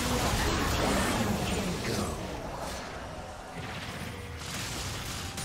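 Magic spells blast and crackle in a fierce game battle.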